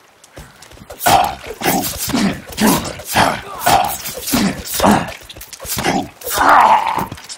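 Heavy blows land in quick succession during a fight.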